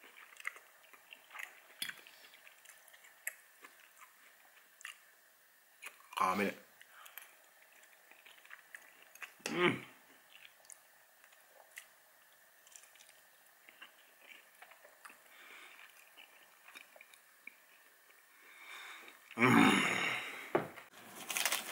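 A fork scrapes and clicks against a plate.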